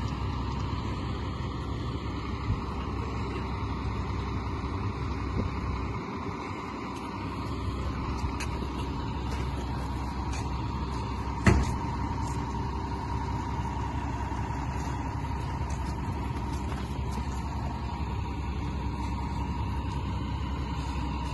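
A tool scrapes along wet concrete.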